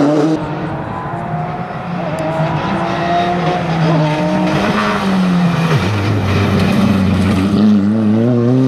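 A rally car engine roars as it approaches, revving up and down through the gears.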